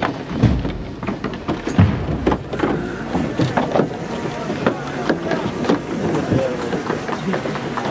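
A crowd murmurs nearby outdoors.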